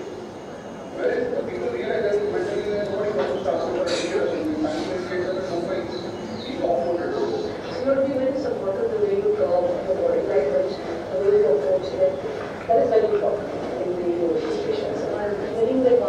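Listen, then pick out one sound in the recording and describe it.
A man speaks with animation through a small loudspeaker.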